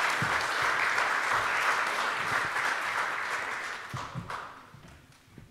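An audience applauds in a large hall, then the applause fades.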